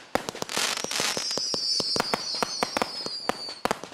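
Fireworks whistle with a falling squeal.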